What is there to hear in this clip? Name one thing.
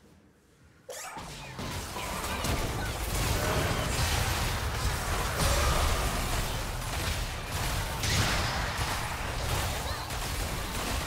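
Video game spell blasts and sword clashes ring out in a busy fight.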